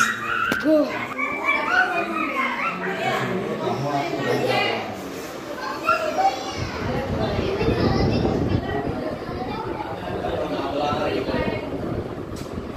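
Young children talk and call out with animation nearby.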